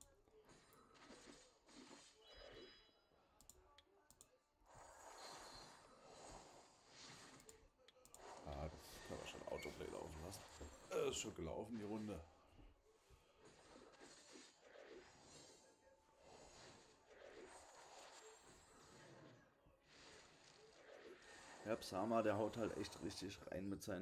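Game effects whoosh and clash.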